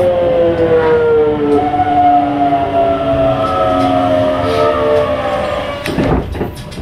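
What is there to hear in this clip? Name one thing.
A train's motor whines and falls in pitch as it slows down.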